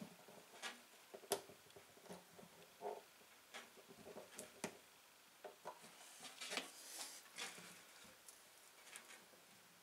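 Small clamps click and knock softly as hands adjust them.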